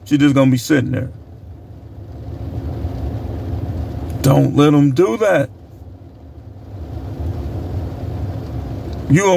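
A middle-aged man speaks close by in short bursts, calmly.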